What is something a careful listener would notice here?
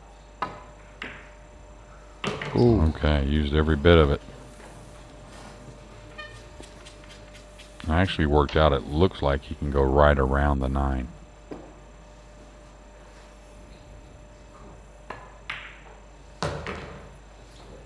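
Pool balls knock together on the table.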